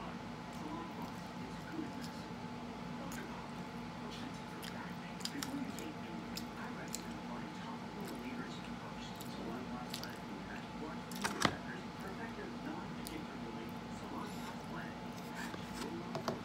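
A woman chews food.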